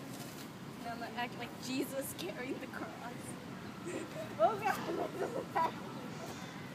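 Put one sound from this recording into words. A young girl talks and laughs nearby.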